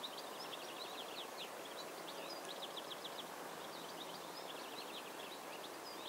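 Small birds chirp in quick, high bursts outdoors.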